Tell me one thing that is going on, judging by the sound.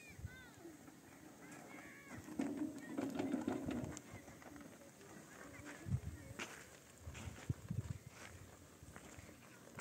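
A wheelbarrow rolls and rattles over rough dirt ground.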